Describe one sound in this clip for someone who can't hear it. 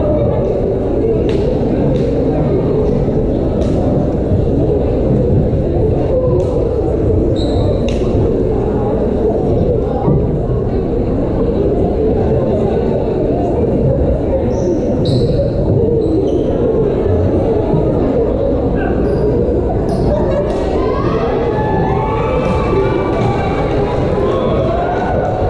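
A crowd murmurs steadily in a large echoing gym.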